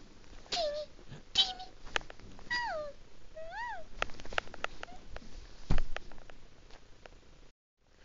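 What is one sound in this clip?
Hands rustle and squeeze a plush toy.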